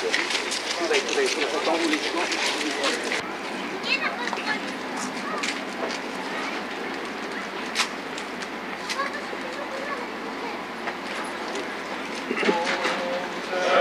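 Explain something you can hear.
Footsteps shuffle on pavement as a group walks.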